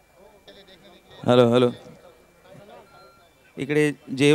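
An older man speaks loudly into a microphone over loudspeakers.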